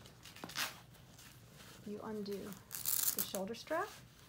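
Fabric rustles as hands handle a cat.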